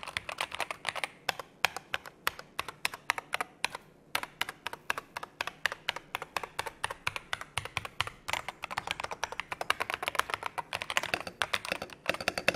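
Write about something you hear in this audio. Keys on a mechanical keyboard clack rapidly and steadily as fingers type.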